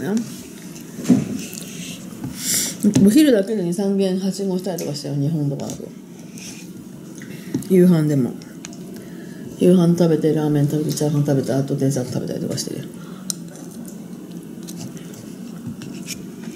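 A metal spoon scrapes inside a paper cup.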